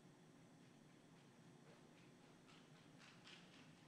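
High heels click on a hard floor in a large room.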